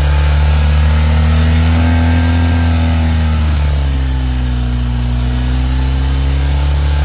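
A motorcycle engine revs up and settles back down several times.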